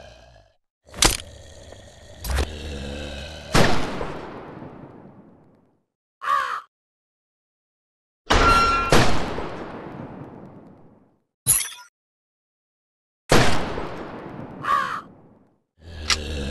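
Sniper rifle shots ring out and echo away.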